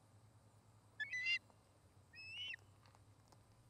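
An osprey gives sharp, high whistling chirps close by.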